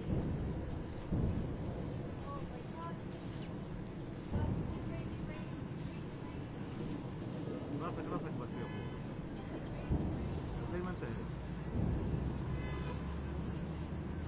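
Distant explosions boom and rumble.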